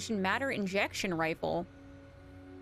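A young woman speaks animatedly into a microphone in a high voice.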